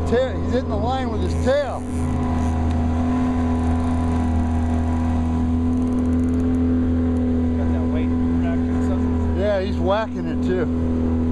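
Water splashes and churns against a boat.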